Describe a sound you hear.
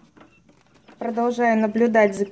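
Newly hatched chicks peep loudly and shrilly close by.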